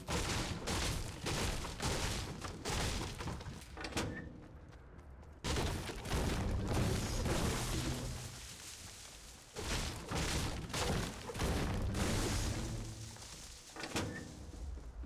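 A pickaxe strikes and chops repeatedly in quick blows.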